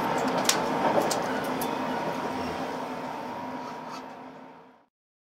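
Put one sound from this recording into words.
A train rumbles and rattles steadily along the track, heard from inside a carriage.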